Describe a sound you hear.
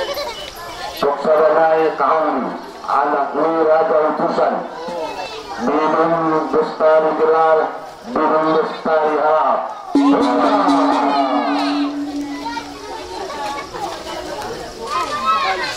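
A man chants loudly through a microphone and loudspeaker.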